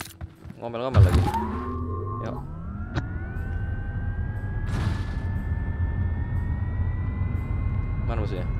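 A car engine starts and revs up, then hums steadily.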